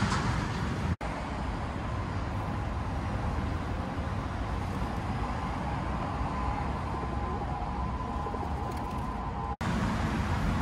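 Traffic hums steadily on a nearby elevated road.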